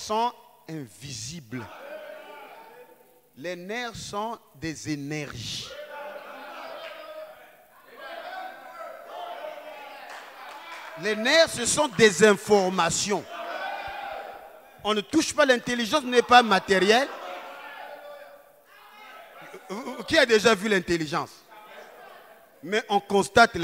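A man preaches with animation into a microphone, heard through loudspeakers in an echoing hall.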